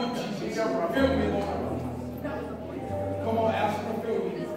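An organ plays along with the singing.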